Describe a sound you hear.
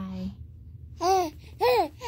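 A baby squeals.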